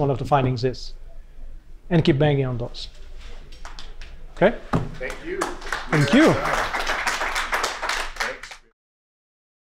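A man speaks through a microphone to an audience.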